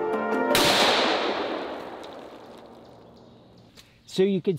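A pistol fires a single loud shot that echoes and slowly fades outdoors.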